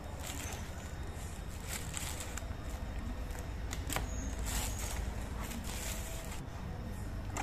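Plastic wrapping crinkles and rustles as it is pulled open.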